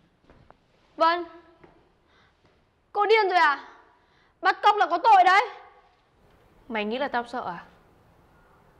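A young woman speaks tensely, close by.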